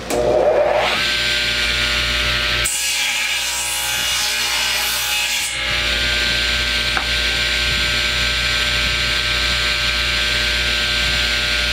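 A table saw whines steadily as it cuts wood.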